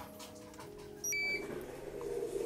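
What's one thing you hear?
A multimeter gives a short electronic beep.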